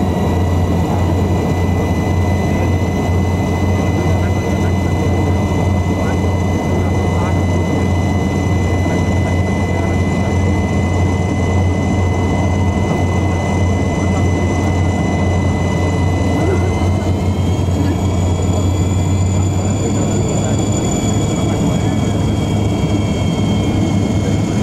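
A small propeller plane's engine drones loudly and steadily, rising slightly in pitch partway through.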